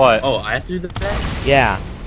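A mounted gun fires rapid shots.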